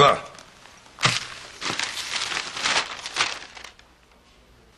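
Paper rustles as a scroll is unrolled.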